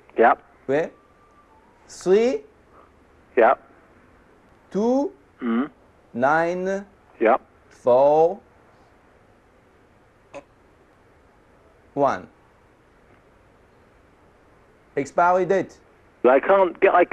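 A man speaks in short, halting bursts nearby.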